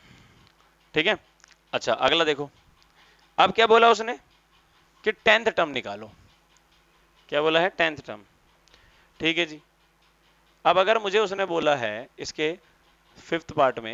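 A man speaks calmly and clearly, close to a microphone, as if explaining a lesson.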